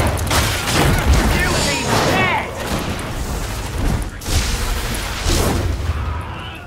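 A heavy gun fires in bursts.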